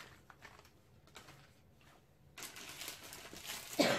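Plastic wrappers rustle as a woman handles them.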